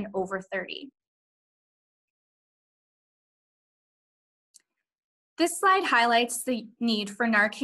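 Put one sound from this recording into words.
A woman speaks calmly through a microphone, as if on an online call.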